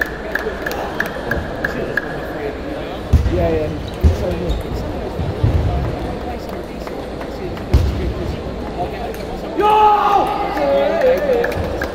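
Many people chatter in the background of a large hall.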